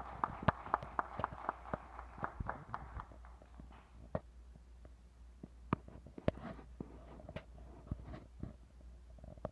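A small brass ensemble plays in a large hall.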